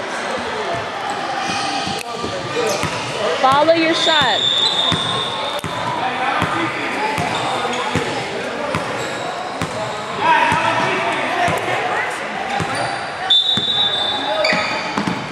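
Spectators chatter and call out in an echoing gymnasium.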